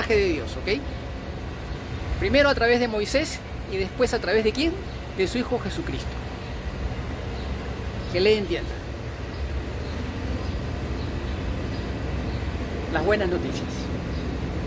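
A middle-aged man speaks close to the microphone, in short animated bursts.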